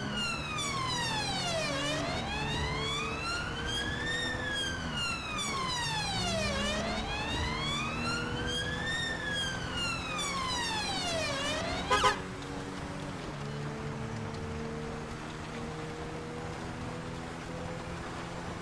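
A car engine hums steadily while driving fast.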